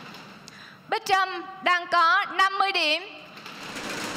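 Another teenage girl answers briefly into a microphone.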